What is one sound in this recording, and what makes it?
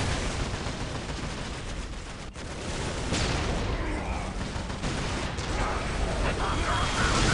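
Gunfire and explosions crackle in a battle.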